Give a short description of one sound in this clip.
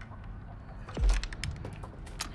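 A wooden door bangs shut with a heavy thud.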